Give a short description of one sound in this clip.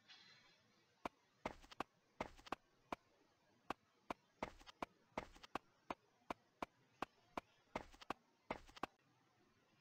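Footsteps tap quickly and evenly.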